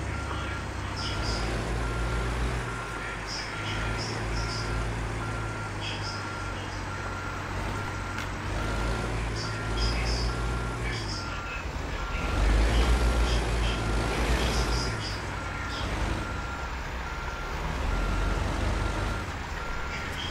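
A truck engine idles with a deep steady rumble.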